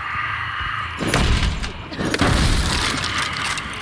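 A wooden pallet is smashed apart with loud cracking blows.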